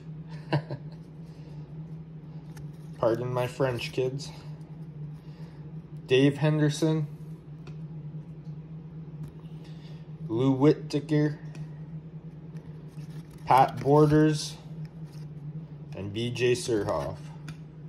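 Trading cards slide and flick against each other in someone's hands.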